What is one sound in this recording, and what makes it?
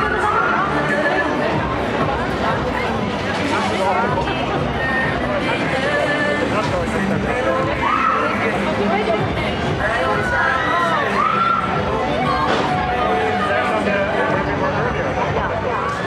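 Loud music plays through loudspeakers at a fairground ride.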